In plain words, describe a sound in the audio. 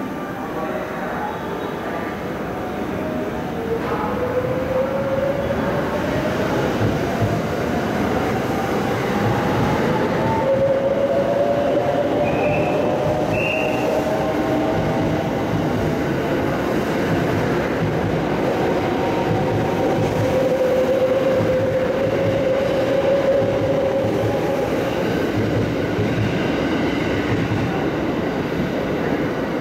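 A train rumbles and clatters past on the rails close by.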